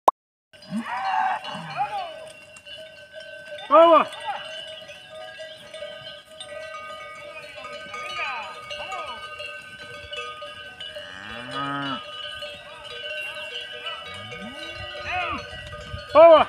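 A herd of cattle walks through grass.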